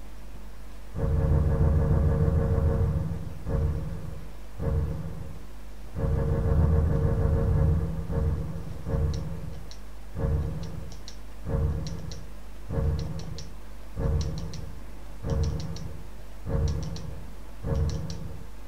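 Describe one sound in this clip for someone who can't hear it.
A short menu tone sounds again and again as pages are flipped.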